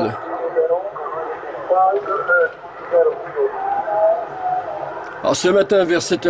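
A man speaks through a radio loudspeaker, thin and crackly.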